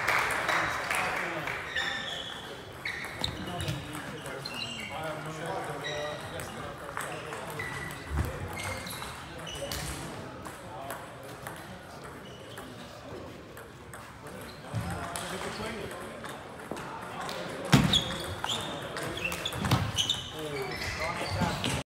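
A ping pong ball clicks back and forth across a table in an echoing hall.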